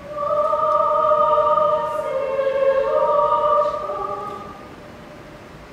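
A choir sings a sustained final chord in a large hall.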